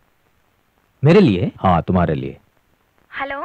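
A man speaks loudly with animation.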